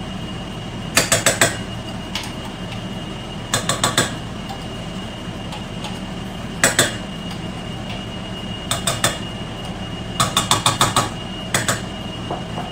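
A metal spoon taps repeatedly against the rim of a cooking pot.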